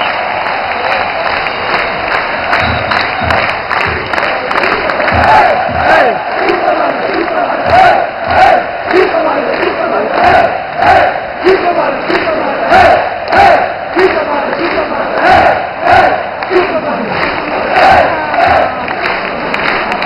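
Hands clap close by in time with the chant.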